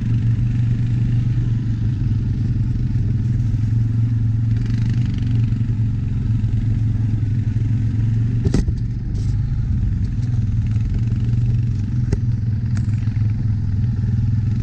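An all-terrain vehicle engine rumbles steadily close by.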